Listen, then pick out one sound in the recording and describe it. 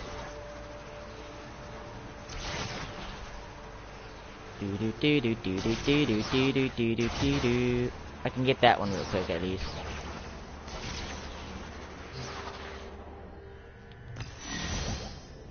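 A crackling energy rush whooshes in bursts.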